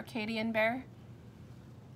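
A woman speaks close by, calmly.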